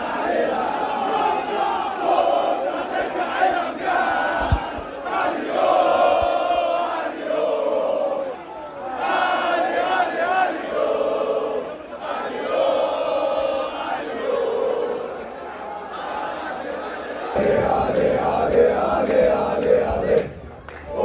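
A crowd of men cheers and shouts.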